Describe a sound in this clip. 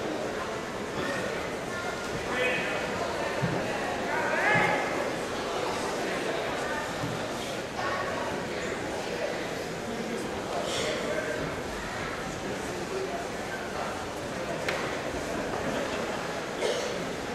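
Men shout encouragement in a large echoing hall.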